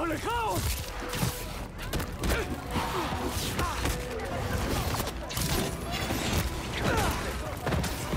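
Creatures let out shrill, wailing screeches.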